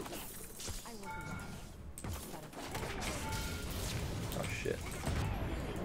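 Video game spell blasts and weapon clashes ring out in a fight.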